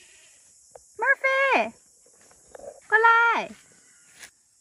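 A cat meows loudly with a falling, drawn-out cry.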